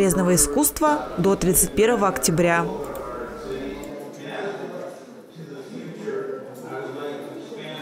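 Visitors murmur and chat quietly in the background.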